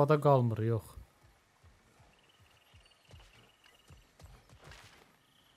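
A warrior's footsteps crunch over grass and stone.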